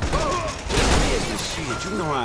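Glass shatters and sprays.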